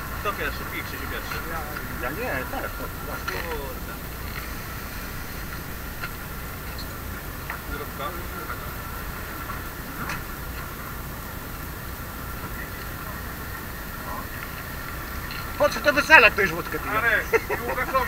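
Men talk nearby in a relaxed way outdoors.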